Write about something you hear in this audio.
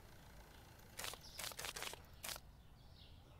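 Banknotes flick into a cash drawer with short clicks.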